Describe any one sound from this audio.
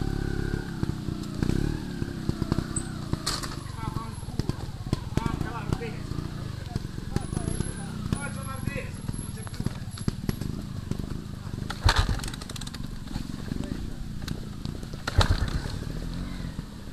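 Motorbike tyres crunch and thump over a rough muddy track.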